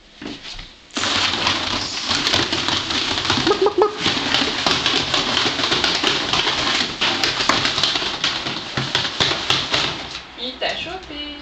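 Small animals scamper and scrabble on a hard floor.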